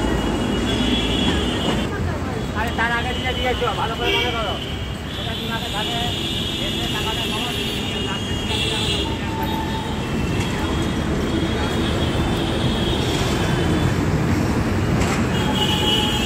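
Vehicle horns honk now and then.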